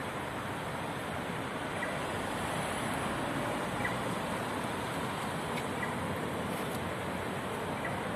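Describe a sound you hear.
Footsteps walk slowly on pavement.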